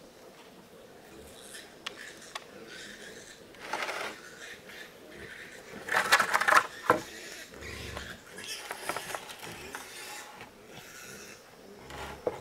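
A man shifts a heavy concrete trough, scraping it over wooden planks.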